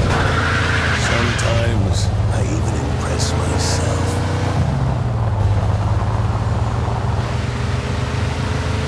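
A car engine hums steadily as a car drives along a street.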